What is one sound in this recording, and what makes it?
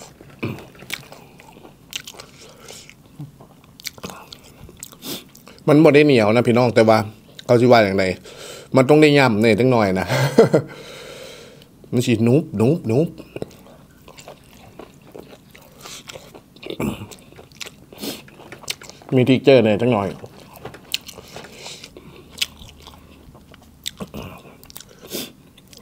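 A young man chews and smacks his lips close to a microphone.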